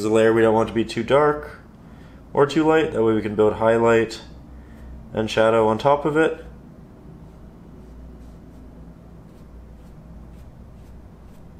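A paintbrush brushes softly across canvas.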